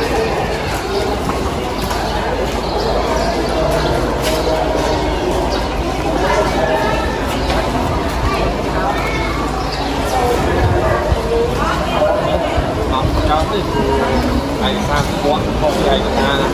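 Footsteps shuffle on a paved path.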